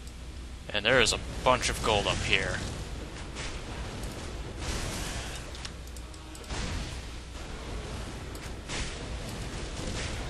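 Magic spells crackle and burst during a game battle.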